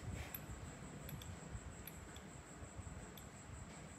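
A brush clicks lightly against the rim of a small jar.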